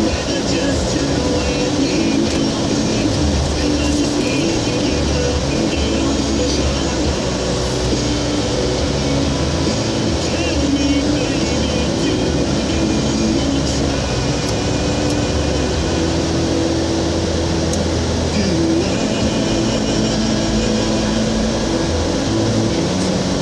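Tyres roll over a road.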